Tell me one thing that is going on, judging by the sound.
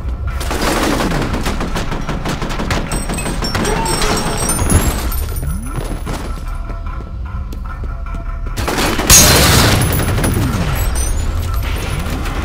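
An automatic rifle fires rapid bursts of shots, echoing loudly.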